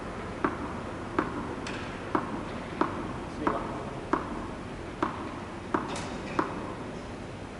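A tennis ball bounces repeatedly on a hard court in an echoing hall.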